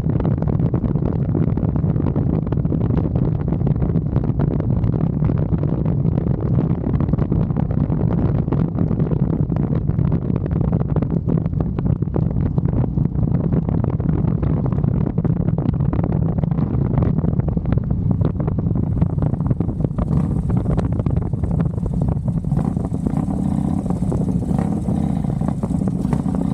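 A motorcycle engine drones steadily while riding at speed.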